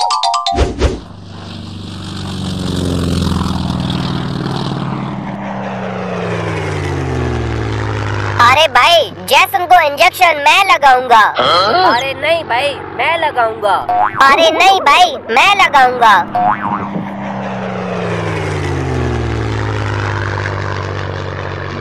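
A small propeller plane engine drones and rises and falls in pitch as it passes.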